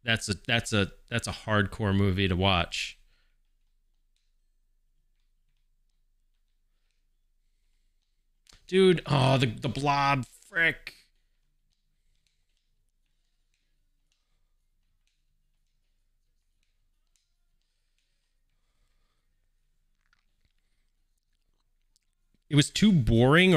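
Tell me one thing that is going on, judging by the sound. A man talks with animation close to a microphone, in short bursts with long pauses.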